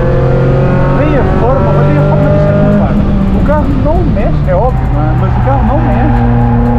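Tyres squeal through corners.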